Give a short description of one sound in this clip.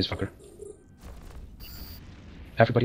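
A laser weapon fires with a sharp humming blast.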